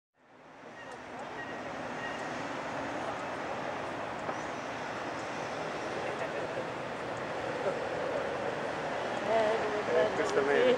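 River water flows gently.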